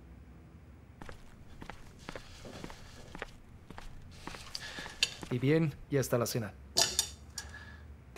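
Plates and glasses clink on a table.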